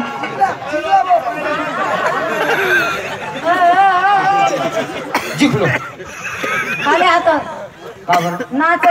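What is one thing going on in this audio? Music plays loudly over loudspeakers.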